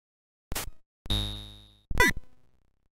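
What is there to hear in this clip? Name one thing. A ringing electronic tone sounds and quickly fades.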